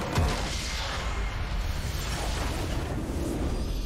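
Game spell effects burst and crackle, then fade away.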